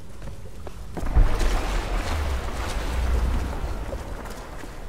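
Water splashes as someone wades through a stream.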